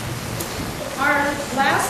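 A woman speaks loudly through a microphone.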